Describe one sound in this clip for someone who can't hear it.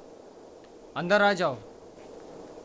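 A man calls out loudly nearby.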